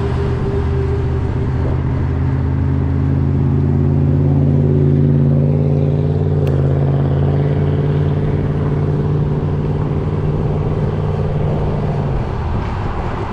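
Passing cars rumble by on the road, growing louder and then fading.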